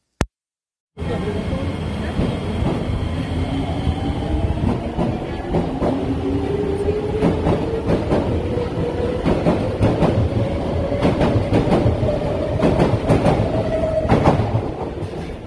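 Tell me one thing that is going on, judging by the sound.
An electric train pulls away with a rising whine that grows higher as it speeds up.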